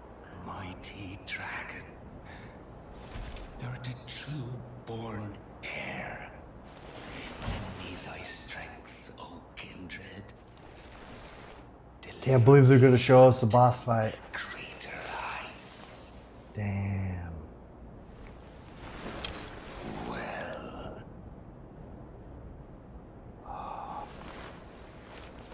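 A young man talks calmly and close to a microphone.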